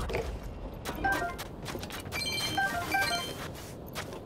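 Loose items clatter and jingle as they are picked up.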